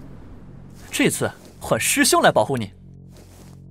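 A young man speaks calmly and reassuringly.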